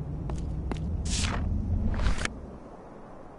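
A door slides open with a whoosh.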